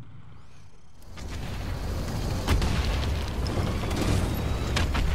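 A vehicle engine rumbles low.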